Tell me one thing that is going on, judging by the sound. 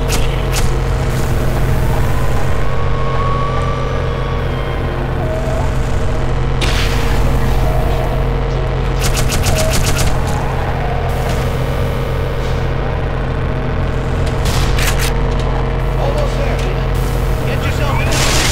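Electric energy beams hum and crackle with a deep drone.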